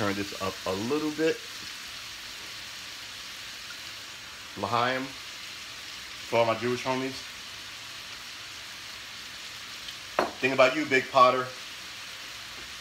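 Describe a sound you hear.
Meat sizzles softly in a frying pan.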